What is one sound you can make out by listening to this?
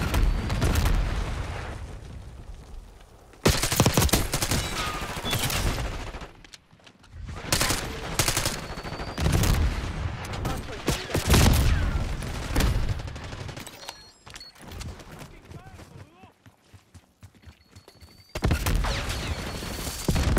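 Guns fire in loud, rapid bursts.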